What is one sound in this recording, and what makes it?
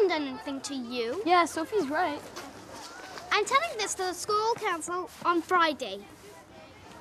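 A young girl speaks sharply to a boy nearby.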